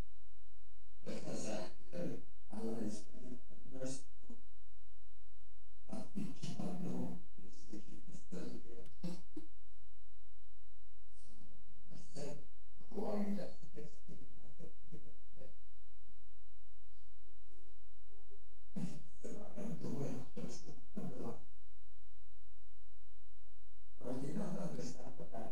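A man speaks slowly and tearfully, close to a microphone.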